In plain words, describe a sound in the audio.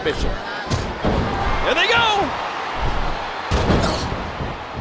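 A body slams down onto a wrestling mat with a heavy thud.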